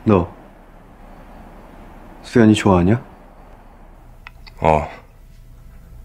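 Young men speak calmly in short phrases, close by.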